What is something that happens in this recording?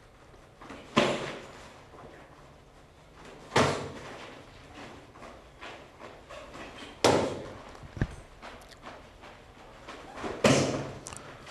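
Kicks and punches thud sharply against padded gloves.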